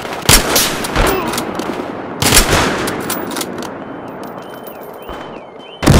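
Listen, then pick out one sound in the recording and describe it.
Gunshots fire loudly, each shot echoing.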